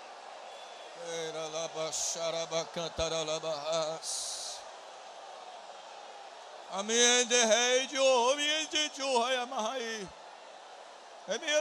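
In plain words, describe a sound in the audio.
A young man speaks into a microphone, heard through loudspeakers in a large room.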